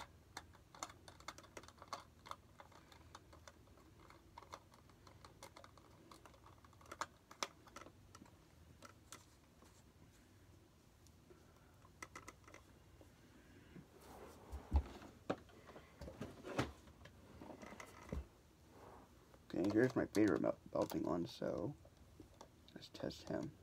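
Small plastic parts click and tap close by.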